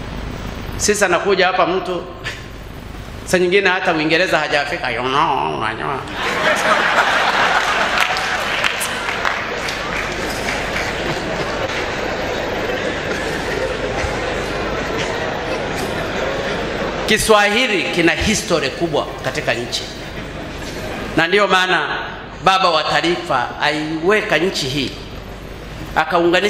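An elderly man speaks with animation through a microphone and loudspeakers.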